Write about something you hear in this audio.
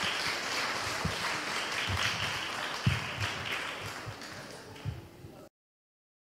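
Children's footsteps thud on a hard floor.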